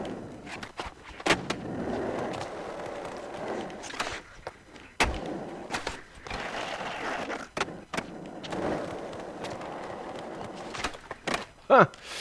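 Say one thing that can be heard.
A skateboard clacks sharply as it lands tricks.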